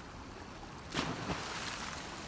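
A body splashes heavily into water.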